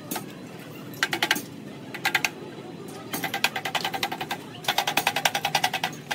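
A hammer strikes metal in quick rapid blows.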